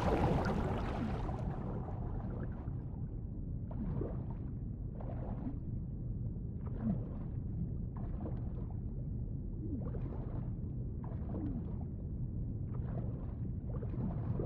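Water splashes and churns in rhythmic bursts as a swimmer strokes.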